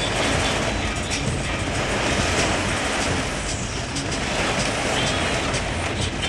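Heavy rain drums steadily on a car's roof and windshield.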